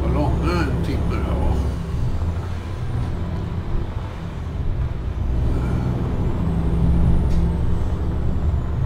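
A truck engine rumbles steadily and low.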